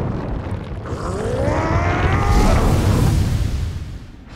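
A giant creature roars loudly.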